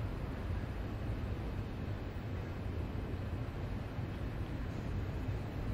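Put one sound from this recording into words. A train engine hums steadily at idle.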